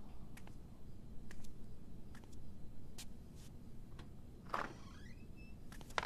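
Footsteps walk across a hard floor and move away.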